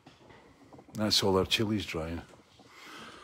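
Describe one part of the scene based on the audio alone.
An older man speaks briefly and loudly, close to the microphone.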